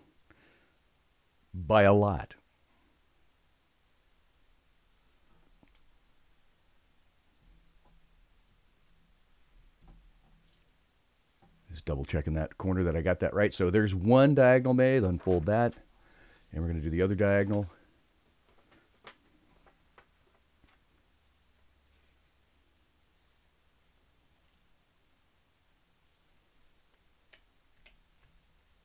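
Stiff paper rustles and crinkles as hands fold and smooth it.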